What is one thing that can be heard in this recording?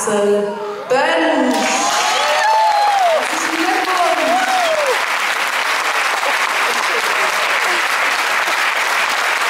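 An audience applauds and cheers loudly.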